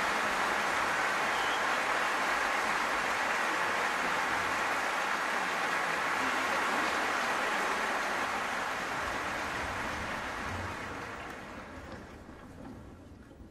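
Applause fills a large hall and slowly dies away.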